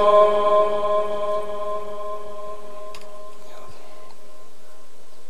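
A man chants a long, held note into a microphone through a loudspeaker, then it slowly fades away.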